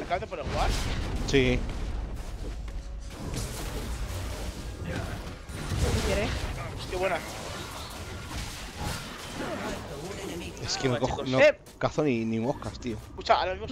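Video game spell effects whoosh and crackle.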